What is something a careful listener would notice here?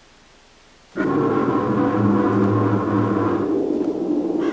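A large creature growls deeply.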